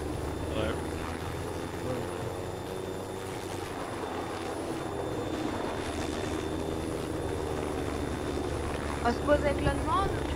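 A helicopter's rotor thumps steadily as it hovers.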